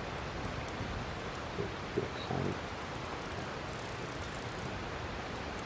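A safe's combination dial clicks as it turns.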